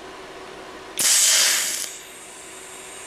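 A welding arc crackles briefly on steel.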